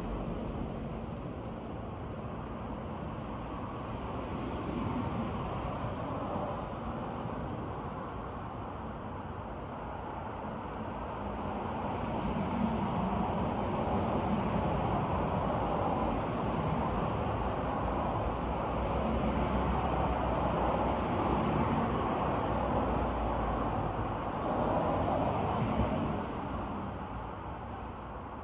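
Leaves rustle in the wind.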